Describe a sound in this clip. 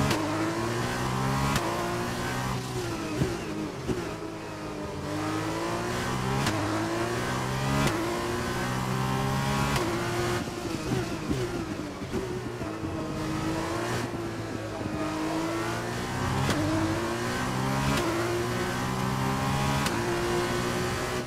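A racing car engine screams at high revs, rising through the gears and dropping as it brakes.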